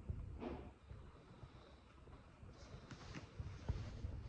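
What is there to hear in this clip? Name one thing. Fingers tap lightly on a table.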